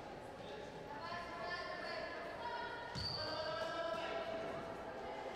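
Young women call out to each other across an echoing hall.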